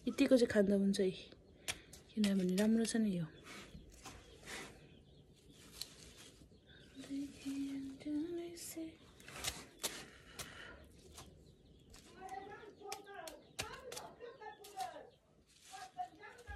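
Tongs snip leaves with short clicks.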